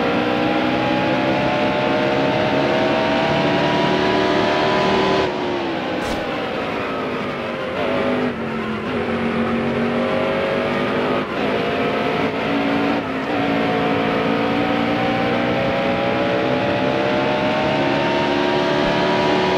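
A race car engine roars at high revs, dropping in pitch as the car slows for a turn and rising again as it speeds up.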